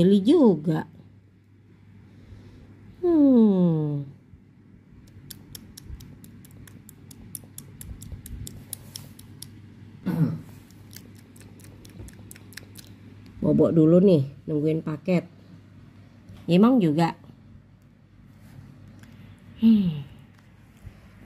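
A small dog whines in short, high cries that rise and fall.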